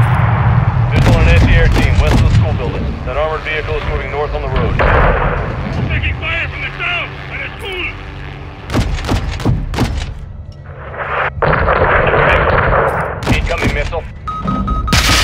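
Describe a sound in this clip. Heavy explosions boom in the distance.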